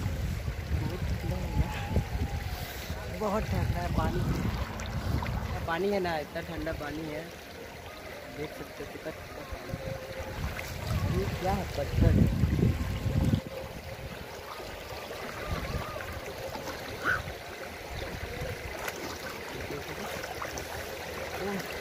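Water splashes around feet wading through a shallow stream.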